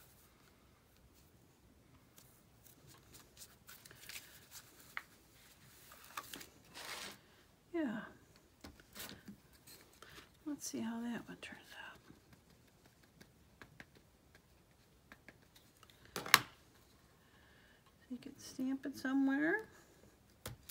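Hands rub and press on paper.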